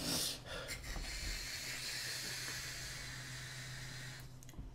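A man draws in a long, steady breath through an electronic cigarette with a soft hiss.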